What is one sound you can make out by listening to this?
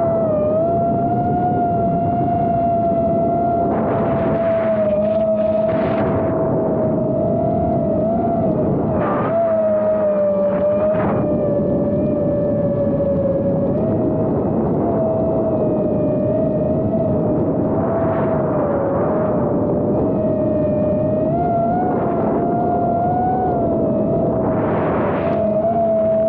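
A small electric propeller motor whines steadily close by, its pitch wavering slightly.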